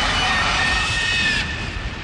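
An explosion bursts.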